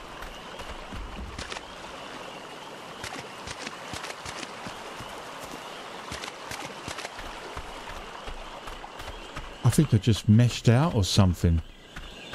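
Footsteps tread on sand and through plants.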